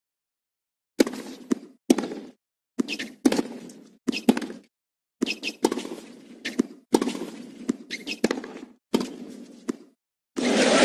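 A tennis racket strikes a ball back and forth in a rally.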